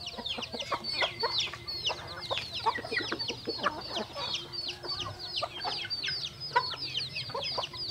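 Chicks cheep constantly in high, quick peeps.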